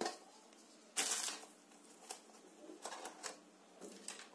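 A thin plastic wrapping rustles under fingers.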